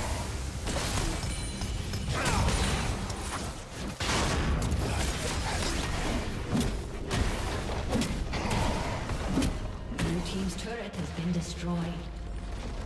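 Spells and attacks crackle and burst in a busy fight.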